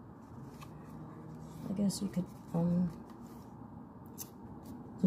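Fingers brush and tap against a paper page.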